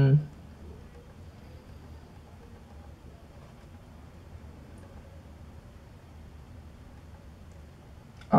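Faint video game sounds play from a small handheld speaker.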